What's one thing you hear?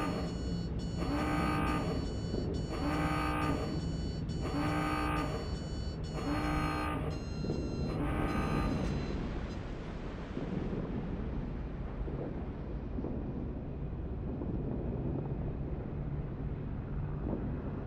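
A ship's engine rumbles low and steadily.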